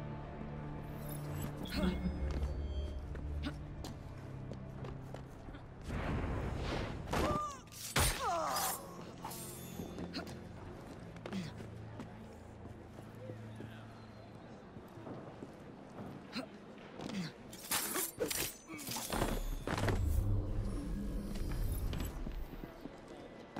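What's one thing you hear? Quick footsteps patter and thud across rooftops.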